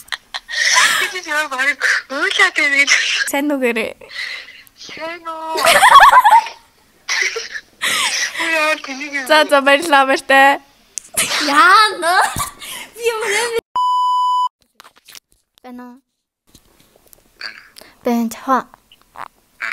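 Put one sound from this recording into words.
Two young women burst out laughing.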